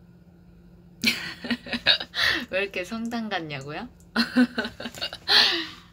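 A young woman laughs close to a phone microphone.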